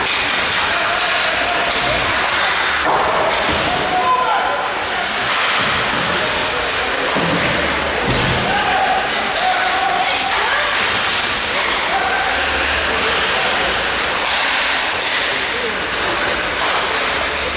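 A crowd of spectators murmurs and cheers in a large echoing arena.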